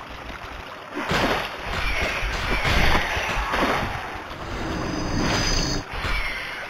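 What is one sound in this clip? A giant rat squeals.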